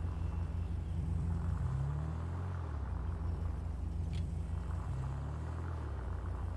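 A sports car engine idles with a deep, steady rumble that rises and falls.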